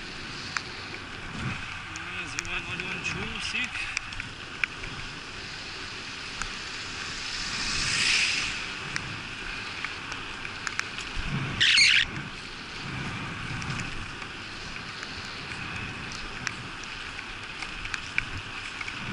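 Wind rushes past steadily outdoors.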